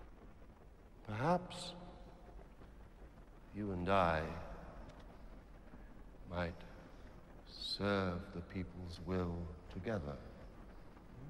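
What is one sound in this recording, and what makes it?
Another man answers calmly.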